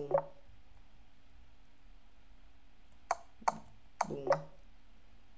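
A young man speaks briefly into a microphone, close by.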